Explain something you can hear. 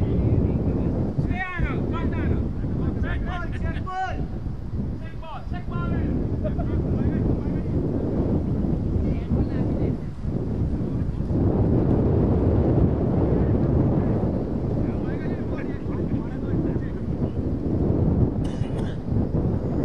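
Wind blusters steadily across an open field.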